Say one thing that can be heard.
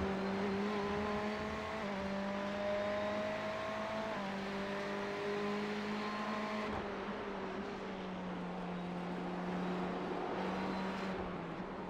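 A race car engine drones steadily, its pitch shifting as it changes gear.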